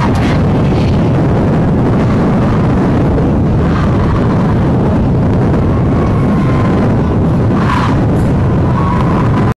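A crowd of young men murmurs and chatters outdoors.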